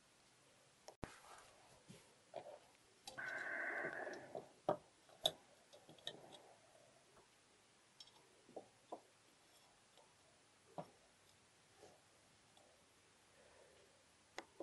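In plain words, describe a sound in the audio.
Small metal parts of a lock click and tap as fingers work them.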